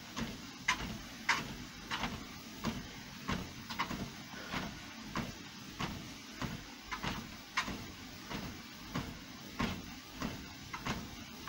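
Feet pound steadily on a treadmill belt.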